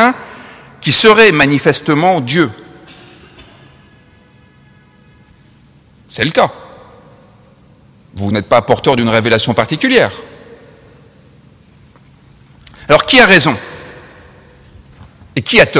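A man speaks calmly into a microphone in a large echoing hall, with pauses between phrases.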